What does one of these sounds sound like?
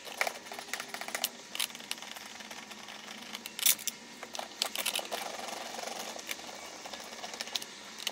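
Plastic parts click and rattle close by.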